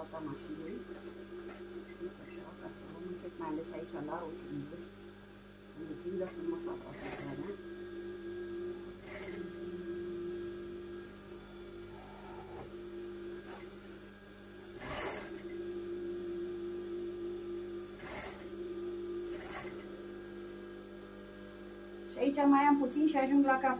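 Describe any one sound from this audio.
A sewing machine hums steadily as it stitches.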